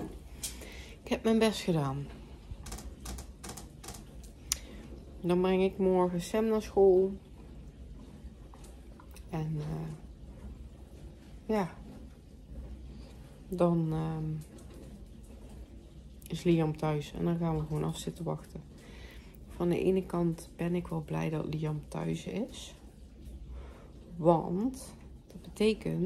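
A woman talks up close in short, animated bursts.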